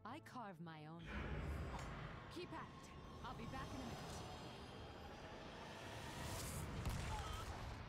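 Magical spell effects whoosh and shimmer.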